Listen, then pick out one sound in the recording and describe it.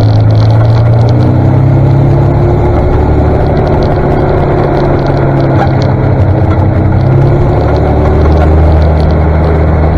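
A tractor engine rumbles steadily close ahead.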